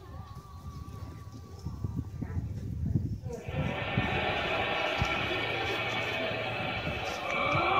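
Feet step and shuffle on dry ground.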